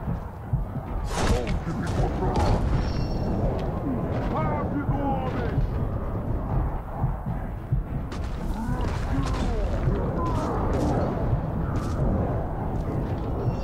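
Swords clash and strike in a fast fight.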